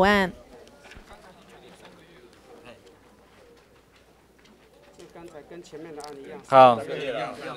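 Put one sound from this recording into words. People murmur and talk quietly in the background.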